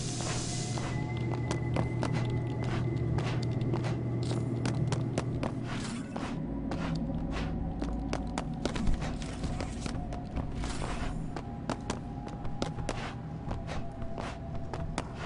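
Quick footsteps tap on a hard floor.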